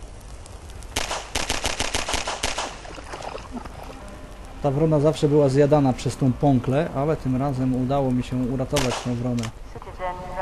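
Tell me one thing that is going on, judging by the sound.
A pistol fires shot after shot.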